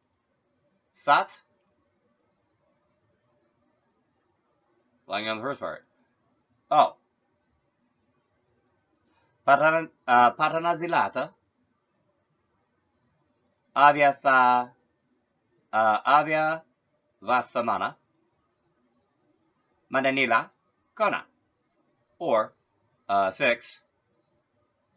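A man talks close to a microphone in short bursts with pauses.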